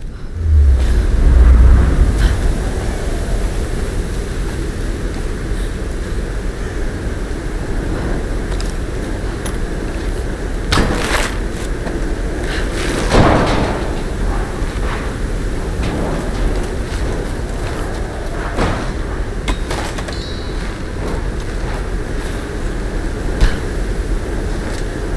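Footsteps crunch through grass.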